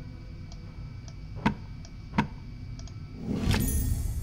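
A wooden panel slides open with a soft scrape.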